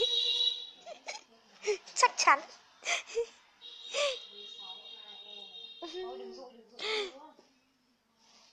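A young woman laughs close to a phone microphone.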